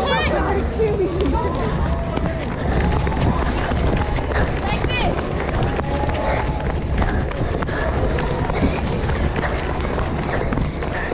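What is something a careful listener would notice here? Children shout and chatter as they run, outdoors.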